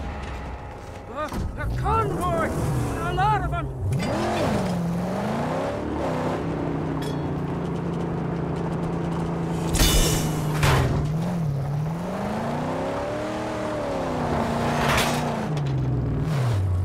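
A car engine revs and roars while driving.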